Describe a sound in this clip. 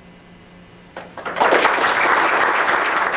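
An audience bursts into loud applause.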